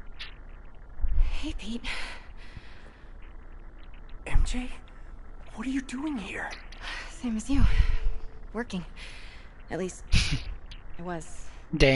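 A young woman speaks warmly.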